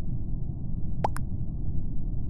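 A short chat alert blips once.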